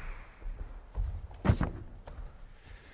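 Footsteps tap across a wooden stage.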